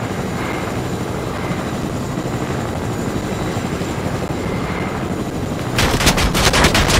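Wind rushes steadily past a glider.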